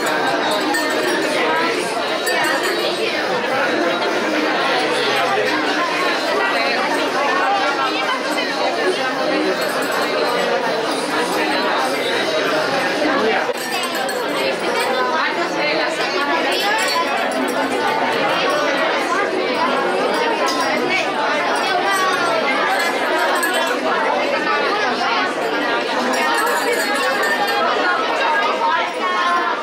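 A crowd of children and adults chatter all at once nearby.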